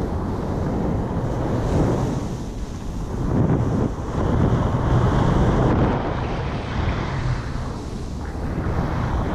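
A snowboard hisses and scrapes through powder snow.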